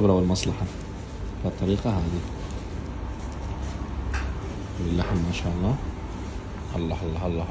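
Hands tear apart soft roasted meat with a wet squelch.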